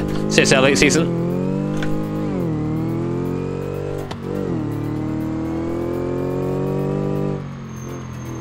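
A car engine revs high and shifts through gears.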